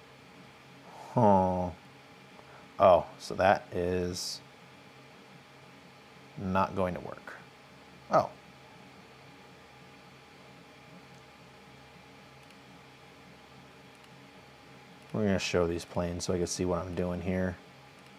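A man speaks in short bursts through a microphone.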